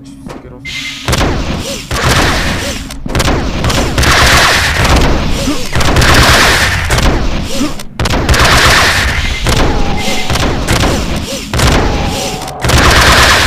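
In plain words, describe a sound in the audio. A heavy gun fires rapid, loud bursts of shots.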